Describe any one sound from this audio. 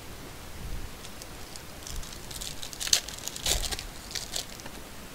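A foil wrapper crinkles and tears.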